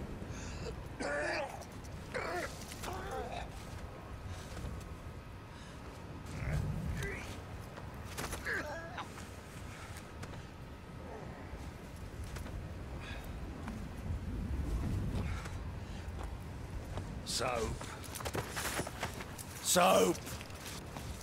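A man groans and grunts with effort nearby.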